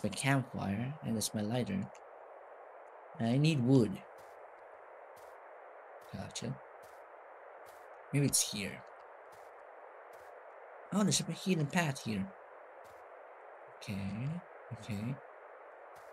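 A young man talks in short bursts close to a microphone.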